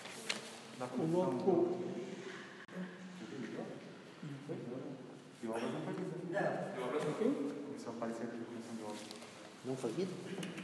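A man speaks steadily in an echoing room.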